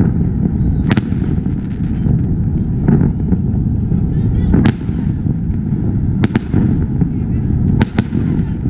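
Fireworks rumble and crackle steadily.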